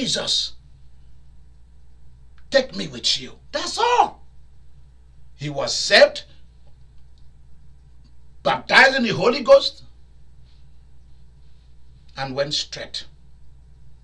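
A man speaks with animation in short bursts, pausing between phrases.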